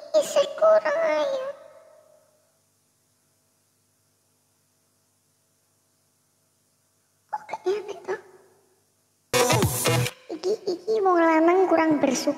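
A young woman speaks close to a headset microphone, with pauses.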